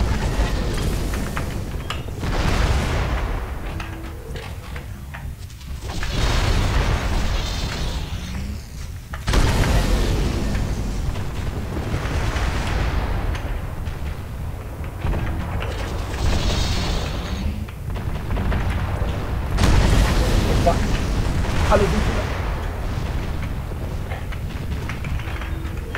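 Heavy mechanical footsteps thud steadily.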